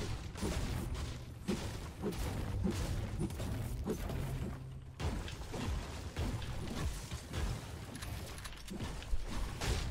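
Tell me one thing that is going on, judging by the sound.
Wooden building pieces clack into place in quick bursts.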